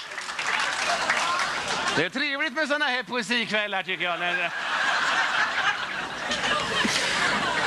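An audience laughs and cheers in a hall.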